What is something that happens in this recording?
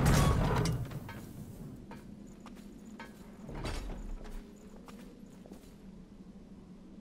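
Heavy footsteps tread on a hard floor.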